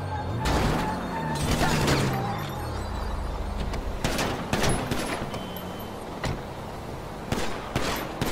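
A bus engine rumbles as it drives along the road.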